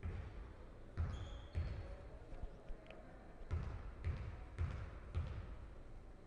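A basketball bounces on a wooden court in an echoing hall.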